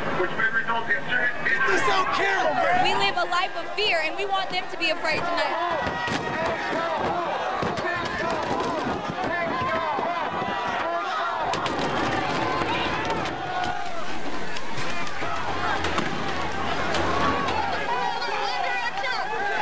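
A crowd shouts and chants outdoors.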